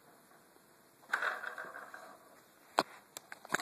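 A baby's toy walker rattles and clacks as it is pushed across carpet.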